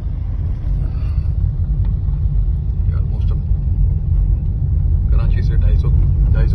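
A car rumbles steadily along a rough road, heard from inside.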